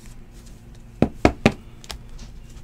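A stack of cards taps against a table.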